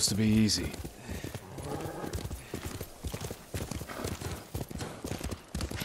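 A horse gallops, its hooves thudding rapidly on soft ground.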